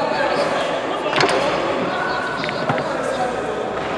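Pool balls click against each other.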